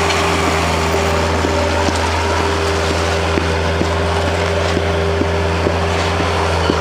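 Metal parts of a loader clank and rattle as it drives.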